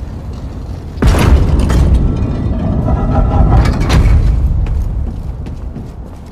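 A heavy stone wall rumbles loudly as it slides open.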